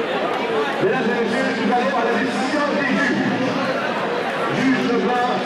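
A man speaks through a loudspeaker into the hall.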